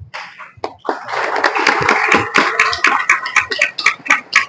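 A group of people applaud and clap their hands.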